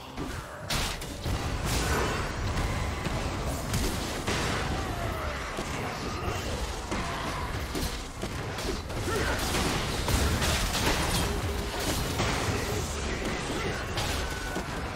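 Blows and impacts land again and again.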